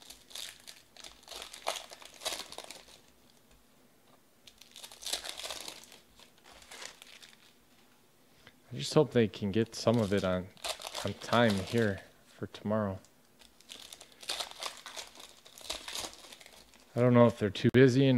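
A foil wrapper crinkles and tears as hands rip open a pack of cards.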